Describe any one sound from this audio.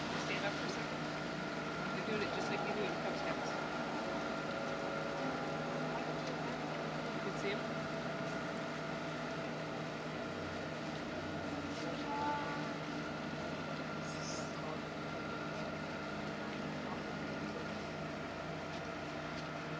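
A ship's engine hums steadily close by.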